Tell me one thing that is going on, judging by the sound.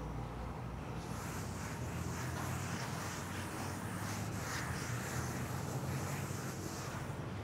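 A cloth rubs softly on a board.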